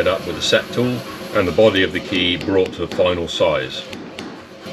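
A power hammer pounds hot metal with heavy, rapid blows.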